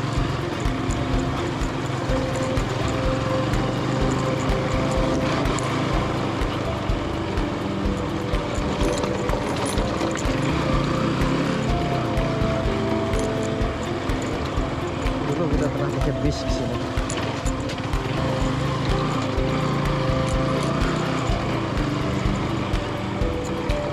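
Tyres crunch and bump over a rough dirt road.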